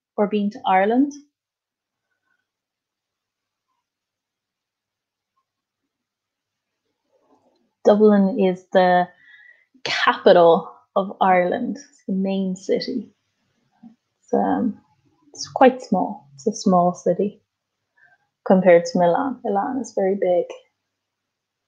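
A young woman speaks calmly over an online call, pausing between phrases.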